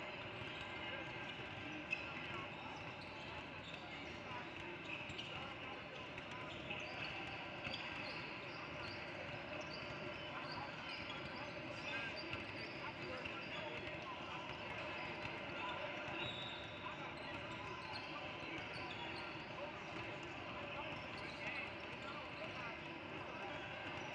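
A crowd of children and adults chatter in a large echoing gym.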